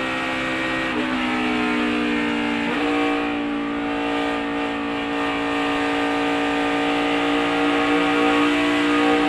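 Race cars roar past at speed.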